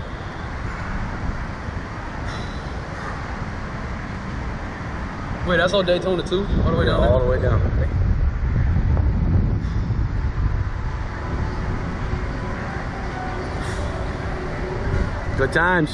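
Strong wind rushes and buffets loudly.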